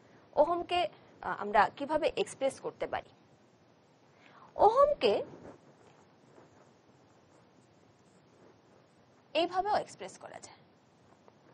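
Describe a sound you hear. A woman speaks calmly and clearly into a close microphone, in short phrases with pauses.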